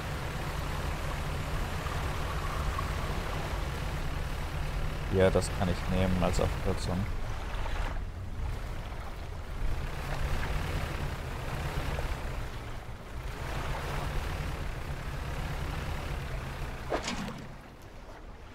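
A boat engine hums low and steady.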